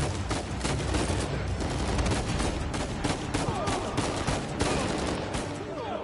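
Rapid gunshots crack and echo in a large hall.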